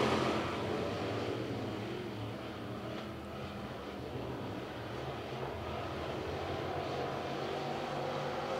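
Race car engines roar loudly.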